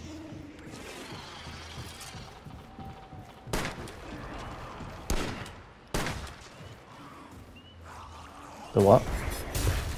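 Heavy footsteps thud quickly over wooden boards and soft ground.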